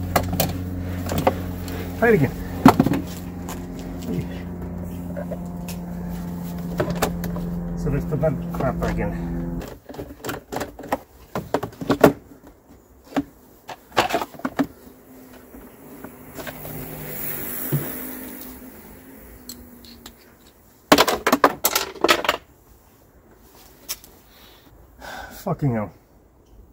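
Plastic engine parts click and clatter up close.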